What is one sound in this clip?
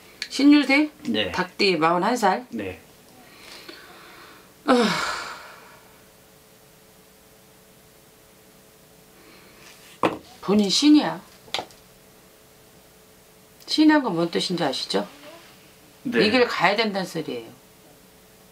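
A middle-aged woman speaks with animation close to a microphone, in short bursts with pauses.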